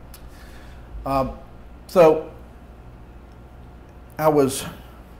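An elderly man speaks slowly and deliberately into a microphone.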